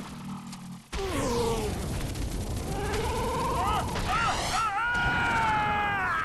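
A large creature roars.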